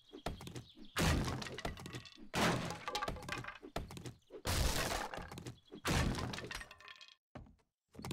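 A wooden club thuds repeatedly against a stack of logs.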